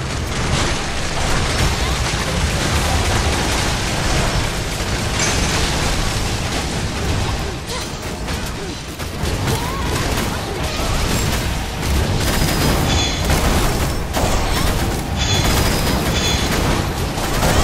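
Magic blasts and impacts crackle and boom in a fantasy battle.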